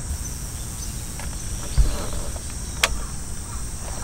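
A button on a power unit clicks.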